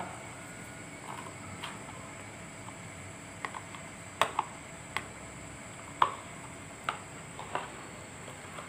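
A spoon clinks and scrapes against a plastic bowl.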